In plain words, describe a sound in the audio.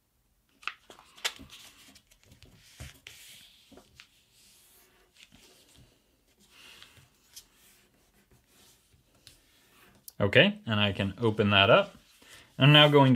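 Paper crinkles and rustles softly as it is folded and creased.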